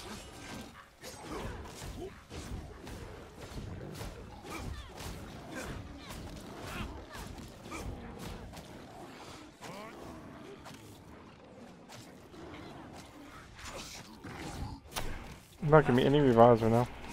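Weapons clash and slash in a fast fight.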